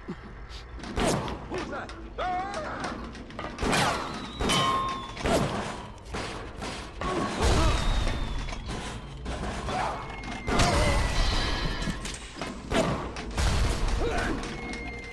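Pistol shots bang in quick succession.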